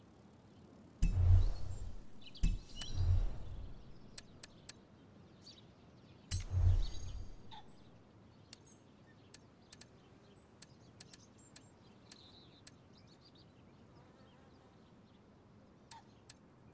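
Short soft clicks tick as menu selections change.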